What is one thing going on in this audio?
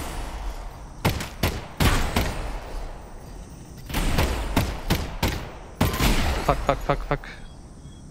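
Gunshots fire in short, sharp bursts.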